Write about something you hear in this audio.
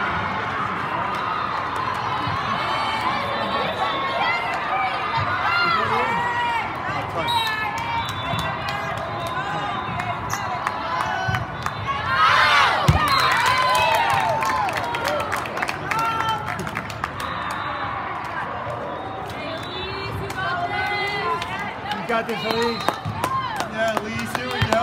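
Young women call out and cheer loudly in a large echoing hall.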